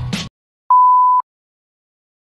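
A steady high test tone beeps briefly.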